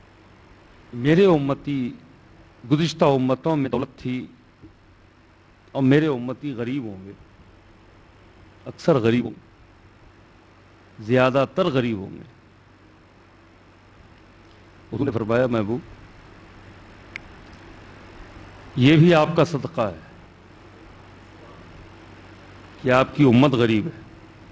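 A man chants in short melodic phrases through a microphone, with pauses between them.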